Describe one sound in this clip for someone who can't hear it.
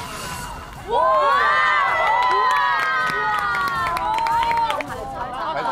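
Young women cheer and squeal.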